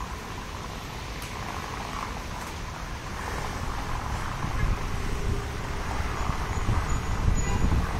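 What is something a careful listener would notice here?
A paramotor engine drones steadily far overhead.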